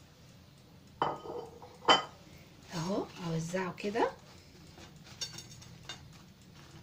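Hands shuffle fries in a glass bowl with soft rustles and clinks.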